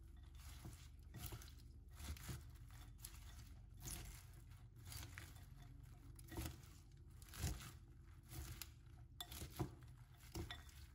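Tongs toss and rustle crisp salad leaves in a glass bowl.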